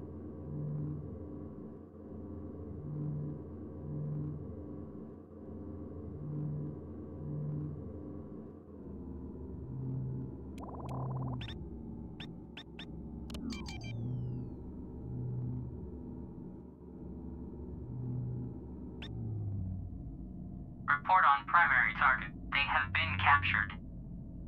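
A spacecraft engine hums low and steady with a slow, pulsing throb.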